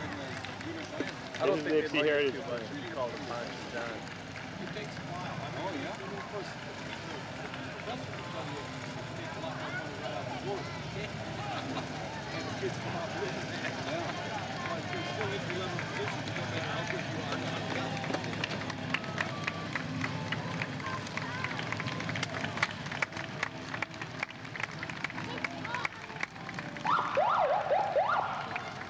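A crowd of onlookers chatters along the street.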